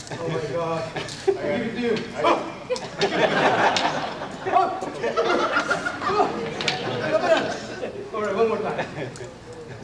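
A man talks with animation to a group nearby.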